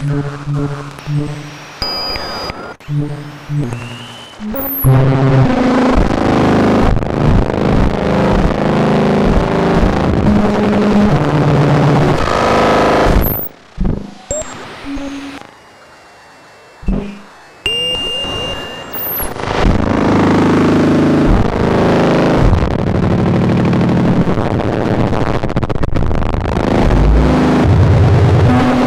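A modular synthesizer plays shifting electronic tones and pulsing notes.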